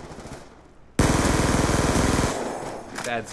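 Rapid gunfire bursts loudly.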